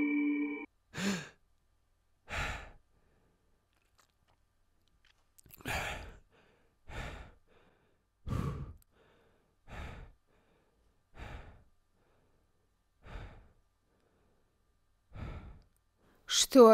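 A man breathes heavily in short, sharp bursts, close by.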